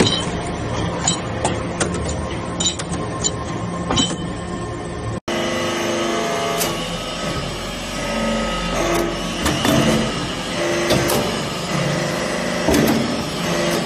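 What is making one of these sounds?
A hydraulic press hums and whines steadily.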